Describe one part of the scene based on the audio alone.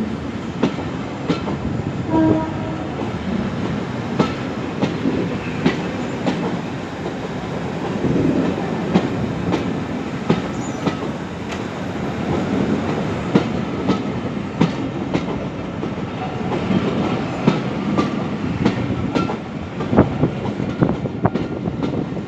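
Railway carriages rumble past close by.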